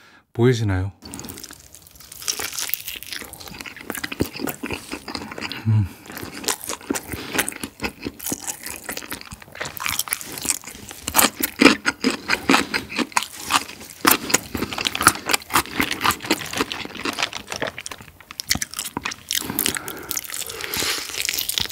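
A young man chews crunchy fried chicken loudly and close to a microphone.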